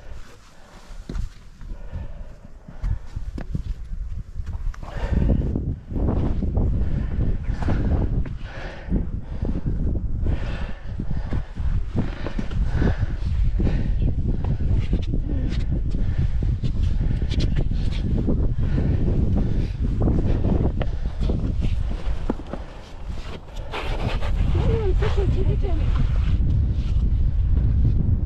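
Footsteps scuff and tap on rock.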